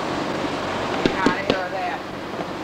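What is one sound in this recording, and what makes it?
Cardboard boxes knock and thump as they are handled.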